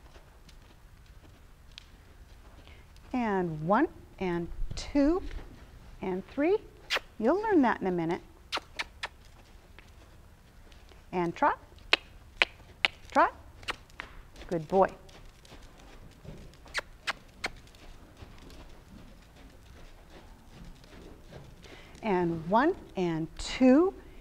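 A horse's hooves thud softly on dirt.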